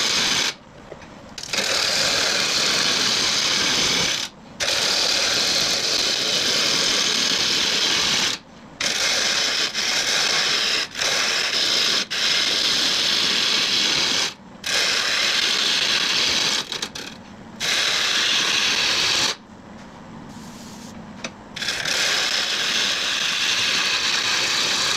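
A lathe tool scrapes loudly against spinning wood, in repeated passes.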